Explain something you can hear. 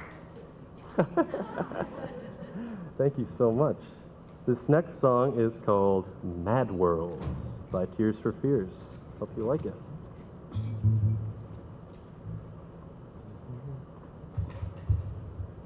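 A man speaks calmly into a microphone over a loudspeaker, in a large hall.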